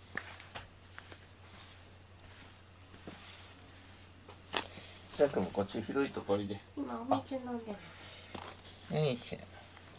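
A hand softly strokes a cat's fur.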